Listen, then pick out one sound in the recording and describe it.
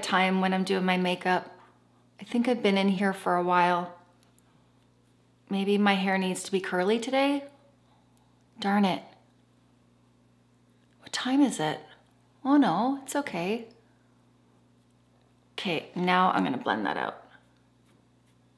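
A middle-aged woman talks calmly and close to a microphone, in short phrases with pauses.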